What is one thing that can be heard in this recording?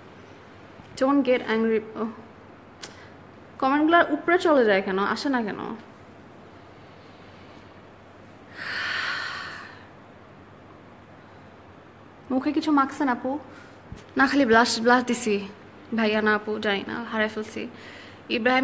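A young woman speaks calmly and close up, in short bursts with pauses.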